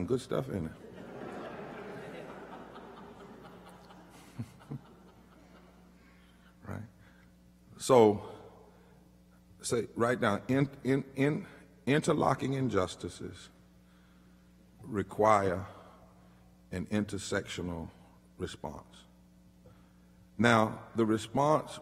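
A man speaks slowly and forcefully into a microphone, with long pauses, in an echoing hall.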